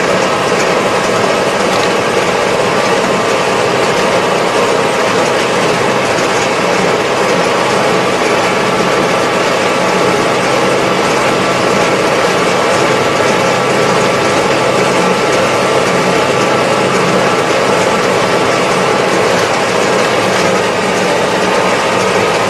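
Tyres hum on a paved road.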